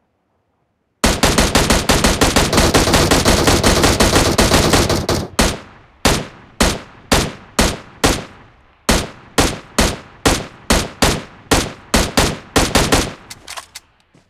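Rifle shots fire in quick succession.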